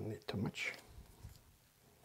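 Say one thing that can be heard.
A knife scrapes and taps softly on a board.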